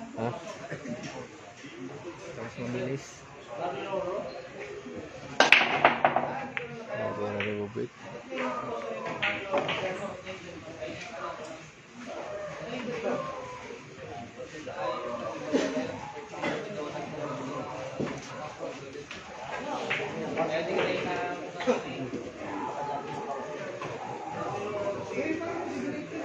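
Adult men talk nearby with animation.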